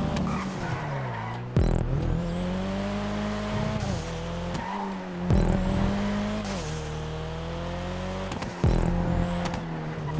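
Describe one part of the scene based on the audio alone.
Tyres screech as a car drifts through corners.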